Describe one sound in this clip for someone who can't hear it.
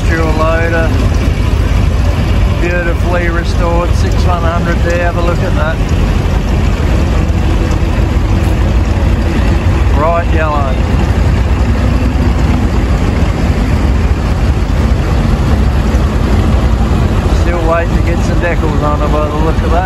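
Old tractor engines rumble and chug steadily.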